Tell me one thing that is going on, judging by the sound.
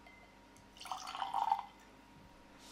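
Whisky pours and splashes into a glass.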